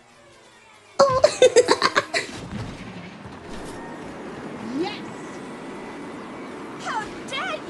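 Electric boost effects crackle and zap.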